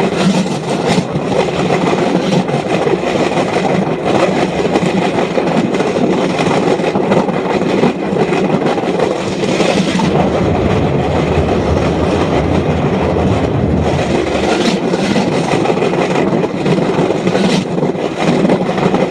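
A small motor roars steadily close by.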